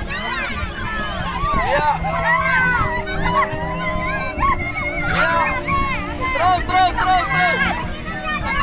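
A crowd of young girls shouts and cheers outdoors.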